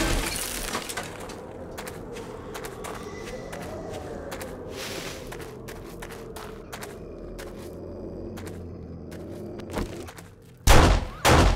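Footsteps crunch over loose rubble.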